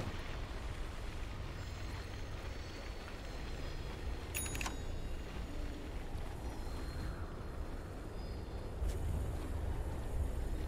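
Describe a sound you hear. Video game spell and attack effects clash and chime.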